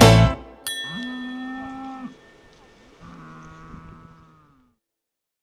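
A cow moos loudly close by.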